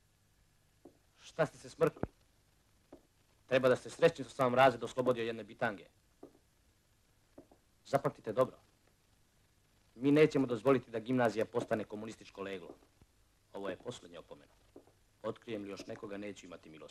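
A man speaks firmly and loudly.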